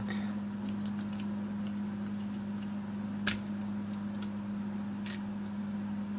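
Plastic parts click and rattle as they are handled close by.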